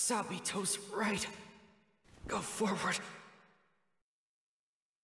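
A young man speaks quietly and strained, his voice echoing.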